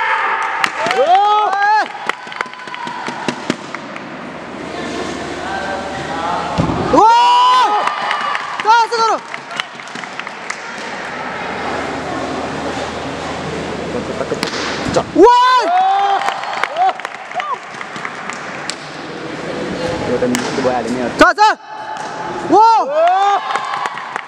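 A young man shouts sharply in a large echoing hall.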